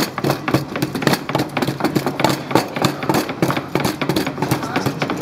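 A pestle pounds in a wooden mortar.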